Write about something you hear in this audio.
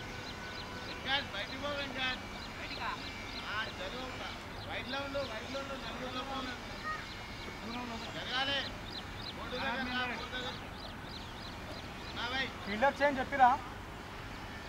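Men call out to each other across an open field outdoors.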